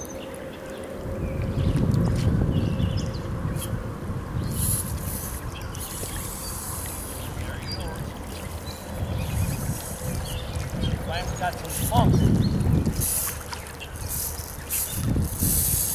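A river flows gently past.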